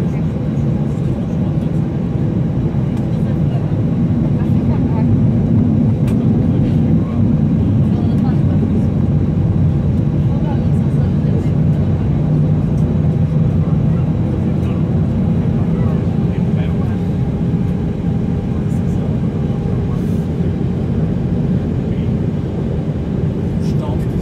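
Jet engines drone steadily, heard from inside an airliner cabin.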